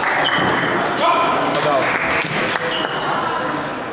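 A ping-pong ball clicks back and forth on a table and paddles.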